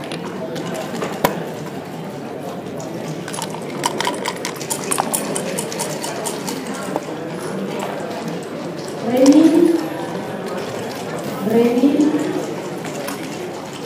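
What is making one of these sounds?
Plastic game pieces click as they are moved on a board.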